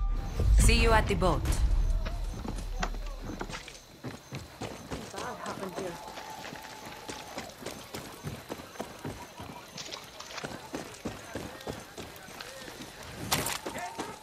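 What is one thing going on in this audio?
Footsteps crunch on dirt as a man runs.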